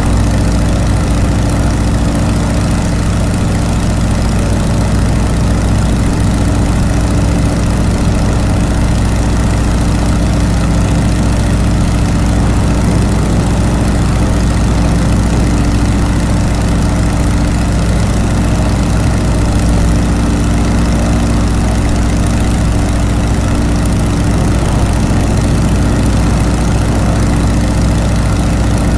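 A propeller engine drones steadily and loudly.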